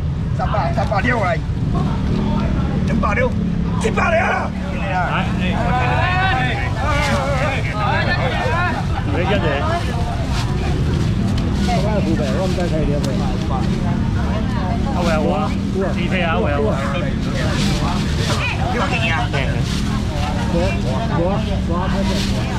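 A middle-aged man calls out loudly to a crowd.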